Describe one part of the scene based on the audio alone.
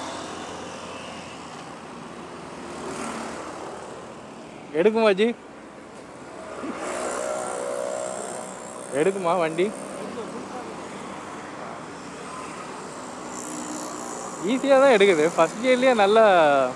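Traffic hums along the road nearby.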